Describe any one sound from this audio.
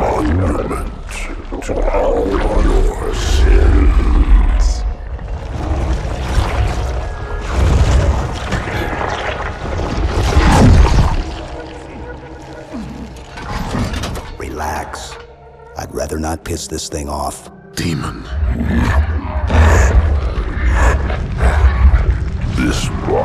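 Energy bolts whoosh past.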